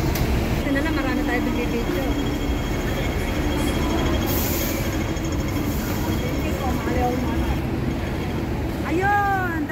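Street noise hums steadily outdoors.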